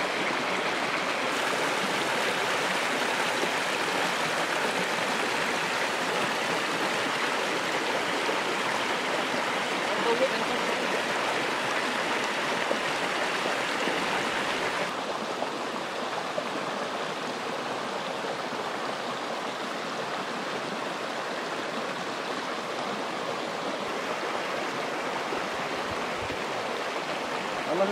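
A stream rushes and splashes over rocks close by.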